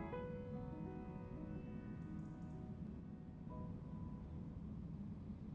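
A piano plays a few ringing notes in a large room.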